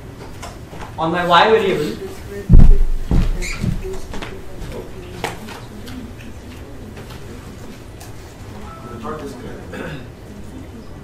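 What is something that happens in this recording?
A young man speaks briefly through a microphone in an echoing hall.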